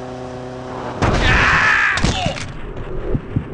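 A motorcycle crashes with a loud clatter.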